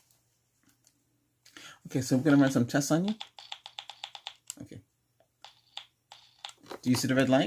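A battery device buzzes and clicks close by.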